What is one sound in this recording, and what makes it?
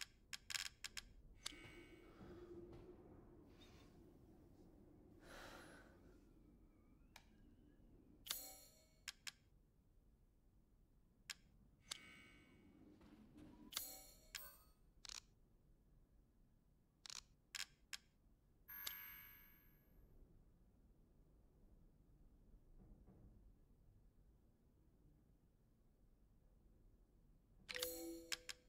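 Short menu clicks and chimes sound now and then.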